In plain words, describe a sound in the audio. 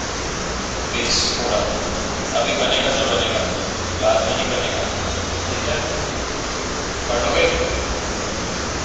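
A man speaks calmly in short bursts.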